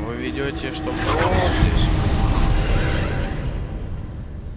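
A magic spell crackles and fizzes loudly.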